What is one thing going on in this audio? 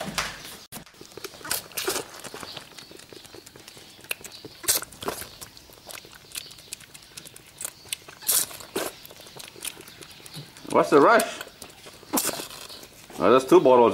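A young goat sucks and smacks noisily on a feeding bottle.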